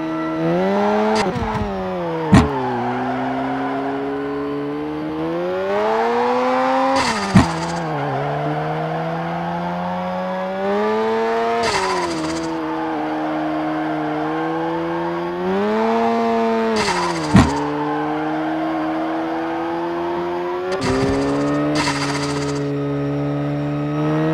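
A car engine revs up and down steadily.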